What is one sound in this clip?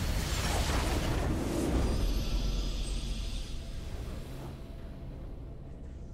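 A video game victory sound swells and then fades.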